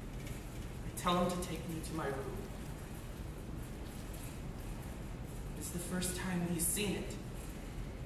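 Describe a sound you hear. A woman speaks expressively on a stage, heard from across a hall.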